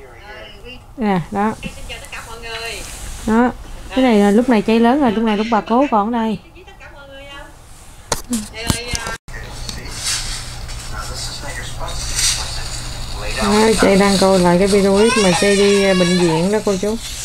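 A toddler girl babbles and talks in a high voice close by.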